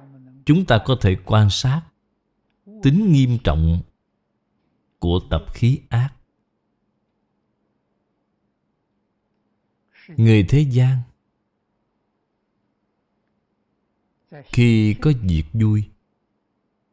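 An elderly man speaks calmly and slowly into a close microphone, in short phrases with long pauses.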